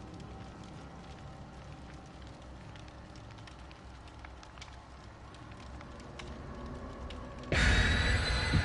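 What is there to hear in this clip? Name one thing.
A campfire crackles and pops softly.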